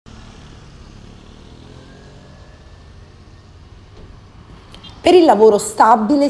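A car drives slowly past.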